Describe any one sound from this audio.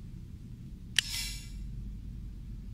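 A bright magical chime sparkles briefly.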